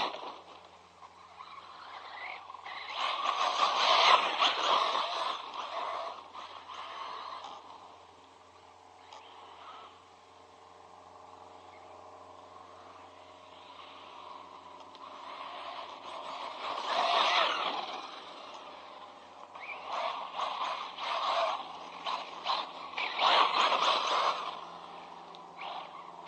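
A small electric motor whines and revs up and down.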